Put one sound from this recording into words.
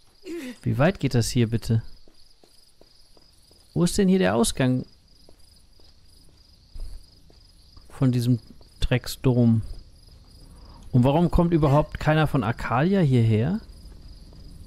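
A man talks with animation into a close microphone, in bursts.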